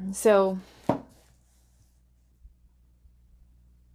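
Hands slide playing cards across a wooden tabletop.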